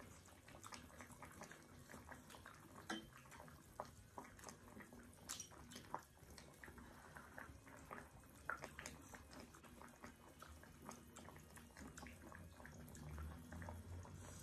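Chopsticks clink against a metal pot.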